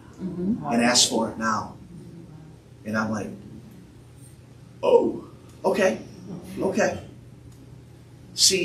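A man speaks in short bursts in a large echoing room.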